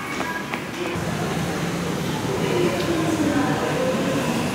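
An escalator hums as it moves.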